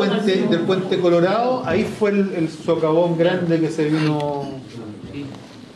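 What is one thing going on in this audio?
An elderly man speaks loudly and with animation.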